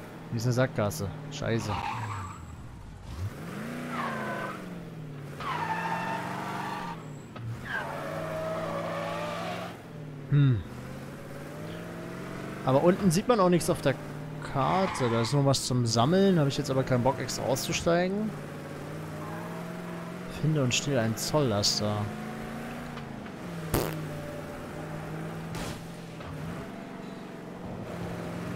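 A car engine hums steadily, rising and falling as the car drives.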